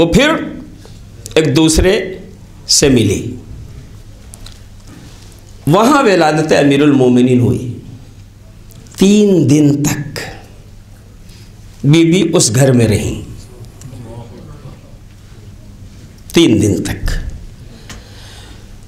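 A man speaks through a microphone in short, emphatic bursts, with pauses between them, in a room that echoes.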